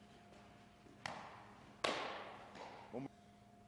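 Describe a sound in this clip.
A baseball smacks sharply into a leather glove, echoing through a large indoor hall.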